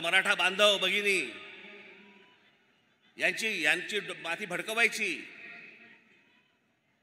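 A man speaks forcefully into a microphone over loudspeakers, echoing outdoors.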